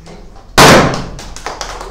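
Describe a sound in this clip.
A party popper goes off with a loud bang.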